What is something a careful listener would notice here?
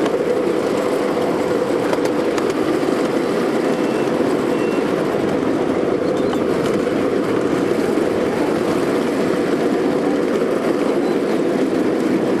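A small train rumbles steadily along its track in the distance.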